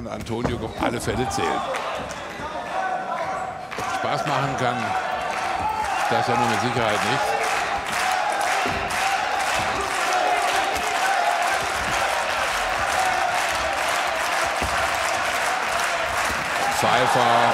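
Gloves thud as punches land.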